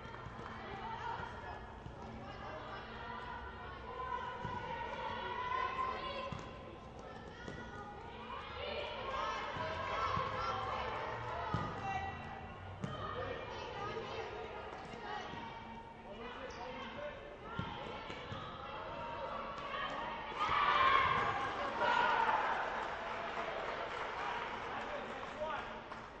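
Young women call out to each other across an echoing hall.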